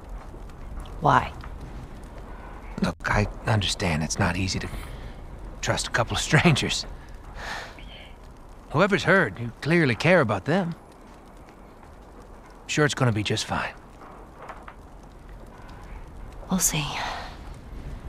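A young man talks close to a microphone.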